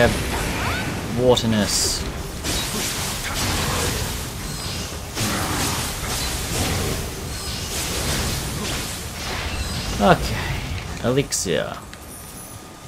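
Blades clash and slash in a fierce fight.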